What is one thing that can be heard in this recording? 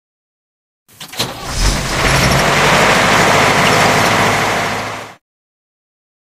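A cartoon truck engine roars and drives away.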